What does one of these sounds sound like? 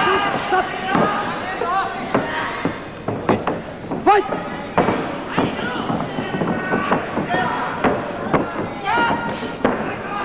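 A crowd of men shouts and cheers loudly in a large echoing hall.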